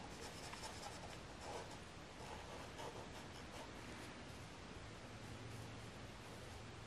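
A felt-tip marker squeaks softly across paper.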